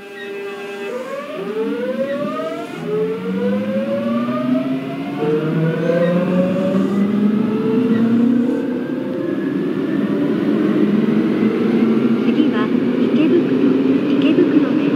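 A train's electric motors whine, rising in pitch as it pulls away and speeds up.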